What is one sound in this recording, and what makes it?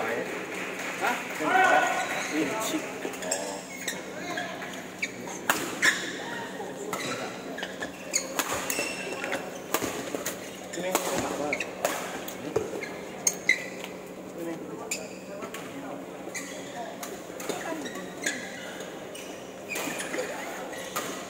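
Young men call out during play in an echoing hall.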